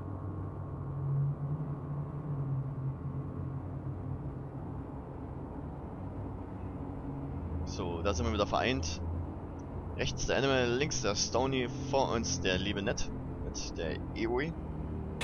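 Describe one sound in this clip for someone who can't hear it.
A spacecraft engine hums with a low, steady drone.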